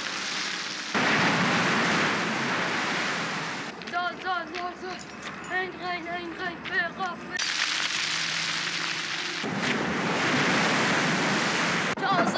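Waves crash against rocks.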